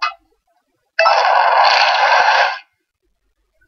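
A bright electronic whoosh bursts out and then stops.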